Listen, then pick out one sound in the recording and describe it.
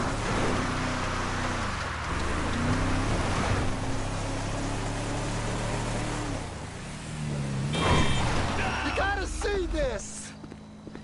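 A truck engine roars and revs while driving over dirt.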